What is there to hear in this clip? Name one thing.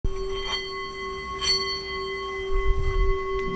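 A wooden striker rubs around the rim of a singing bowl.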